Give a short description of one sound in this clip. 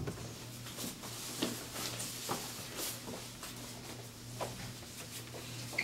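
Footsteps tap on a hard floor in an echoing corridor.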